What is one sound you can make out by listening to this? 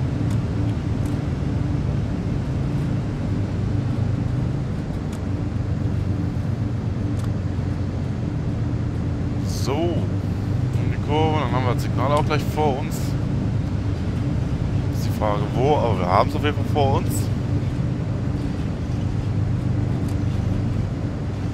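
A locomotive engine rumbles steadily.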